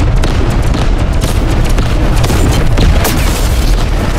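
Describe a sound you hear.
A heavy explosion booms and rumbles.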